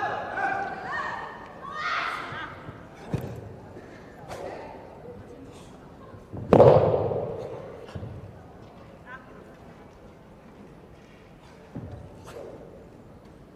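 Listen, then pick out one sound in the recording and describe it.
A staff whooshes through the air.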